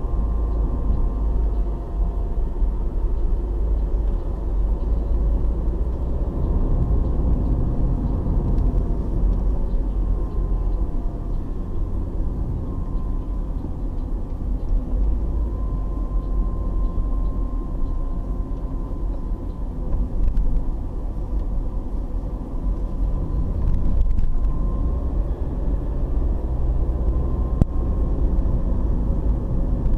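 A car's engine and tyres rumble from inside the car as it drives along a paved road.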